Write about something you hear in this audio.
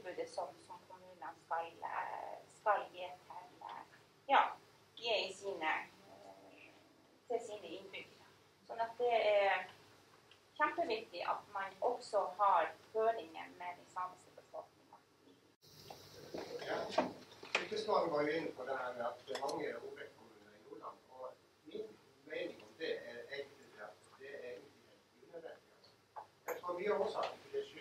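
A middle-aged woman speaks calmly to an audience in a room with a slight echo.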